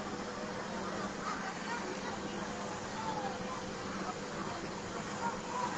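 A fire truck's engine idles.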